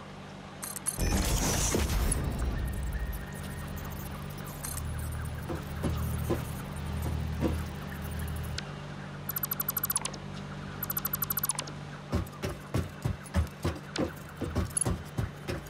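Short electronic chimes and clicks sound as building pieces snap into place.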